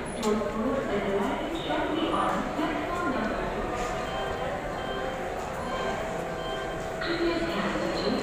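Footsteps pass close by on a hard floor.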